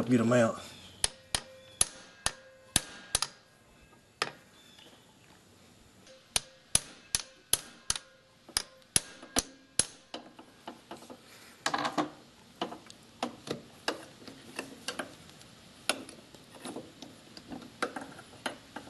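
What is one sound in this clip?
A ratchet wrench clicks in quick bursts.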